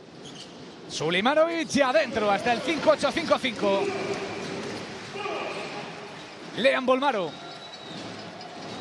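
A crowd cheers in a large echoing arena.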